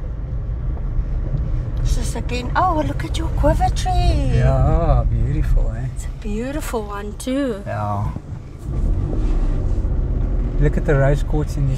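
A car engine hums while driving slowly.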